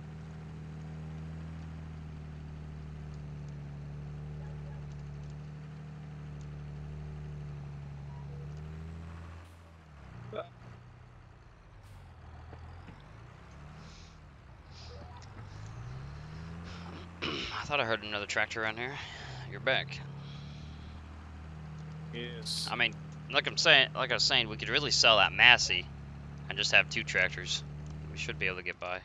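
A tractor engine hums steadily, its pitch dipping and rising now and then.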